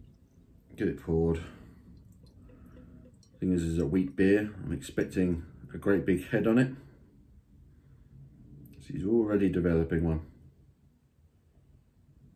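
Beer pours and gurgles into a glass.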